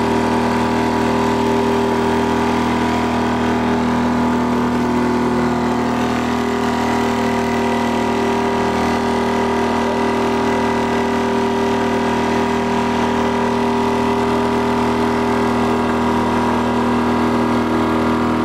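An outboard motor drones steadily close by.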